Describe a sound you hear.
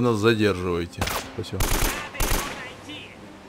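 A rifle fires a quick burst of gunshots.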